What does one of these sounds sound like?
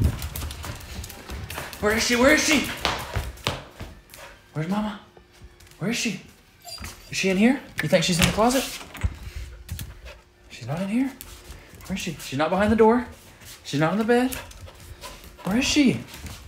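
A dog's claws patter across a hard floor.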